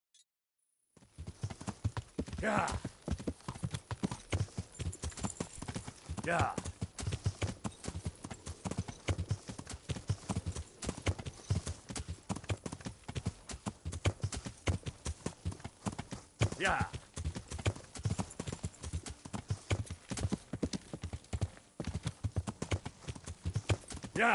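Horse hooves thud rapidly on the ground at a gallop.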